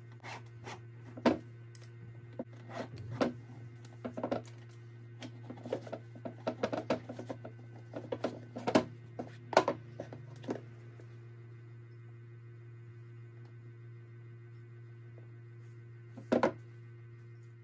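Leather boots knock and creak as hands handle them.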